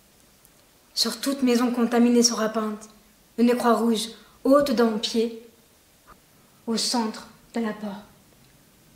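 A young woman speaks expressively, close by.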